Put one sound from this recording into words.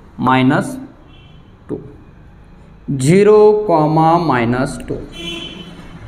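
A man speaks clearly and calmly into a nearby microphone.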